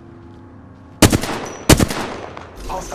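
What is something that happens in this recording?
A rifle fires a short burst of loud shots.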